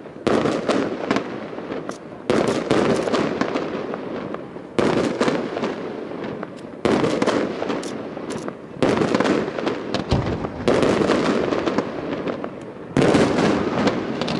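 Fireworks burst with loud booms and crackles outdoors.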